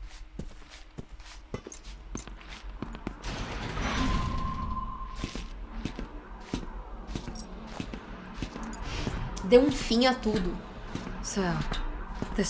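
Footsteps clank steadily on a metal floor.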